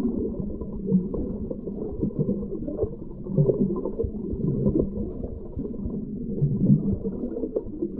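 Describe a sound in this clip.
Water gurgles and bubbles underwater, muffled and low.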